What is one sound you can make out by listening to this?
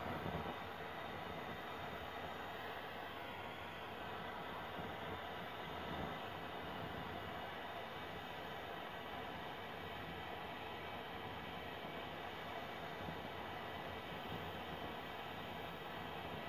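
A handheld butane torch flame hisses and roars.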